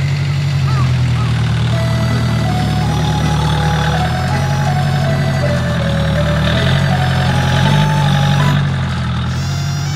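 Chained tractor tyres crunch over packed snow.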